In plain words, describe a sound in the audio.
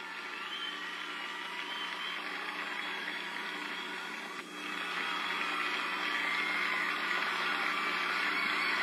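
Waves wash onto a beach.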